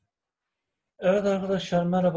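A man speaks close to a microphone, as on an online call.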